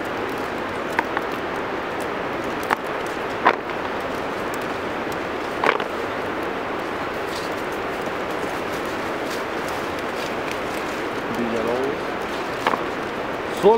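Small berries snap off a branch with sharp little clicks.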